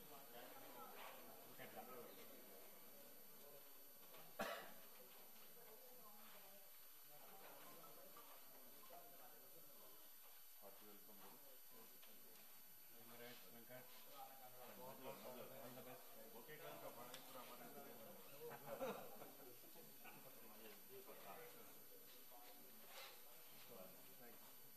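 Several men talk quietly among themselves nearby.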